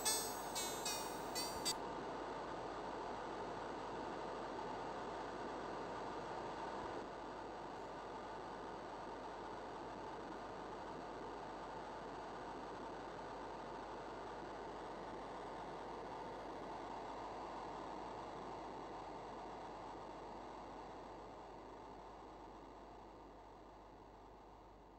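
A steady synthesized noise hisses and slowly fades away.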